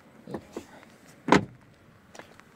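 A car door clicks and thumps shut.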